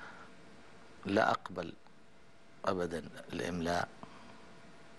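An older man speaks calmly into a close microphone, in short bursts.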